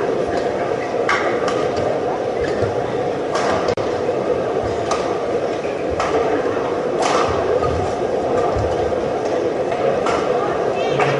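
A shuttlecock is struck sharply by rackets back and forth.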